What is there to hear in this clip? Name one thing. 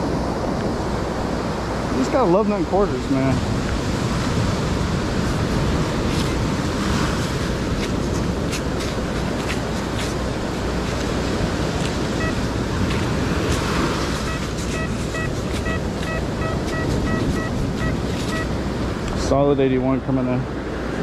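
Waves wash steadily onto the shore and foam over sand.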